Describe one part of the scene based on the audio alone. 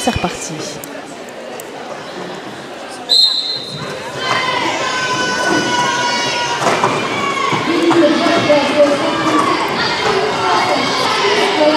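Young women call out to each other across the hall.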